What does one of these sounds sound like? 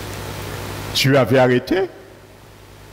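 A middle-aged man speaks briefly through a headset microphone and a loudspeaker.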